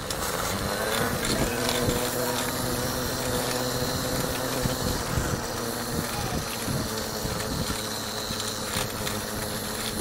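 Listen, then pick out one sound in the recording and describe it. Running shoes patter on a paved path.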